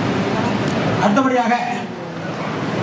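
A middle-aged man speaks loudly into a microphone, heard through a loudspeaker.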